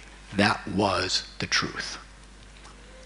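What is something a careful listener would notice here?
An older man speaks with animation into a microphone.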